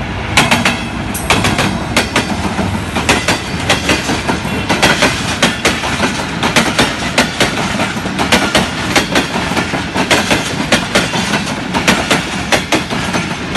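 A train rolls by close up, its wheels clacking rhythmically over rail joints.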